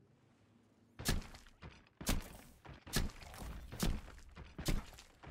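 Cannon shots boom one after another.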